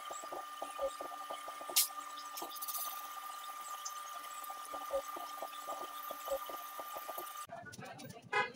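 A brake lathe hums steadily.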